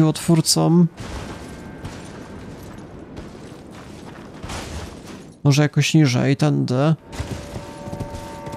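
Heavy stone rumbles and crumbles as a giant creature climbs a wall.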